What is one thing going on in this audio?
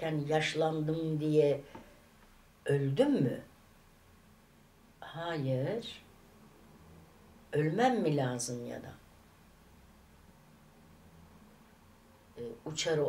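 A middle-aged woman speaks calmly in short phrases, close to a microphone.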